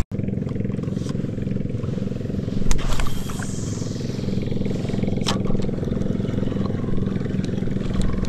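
A fishing reel whirs as it is wound.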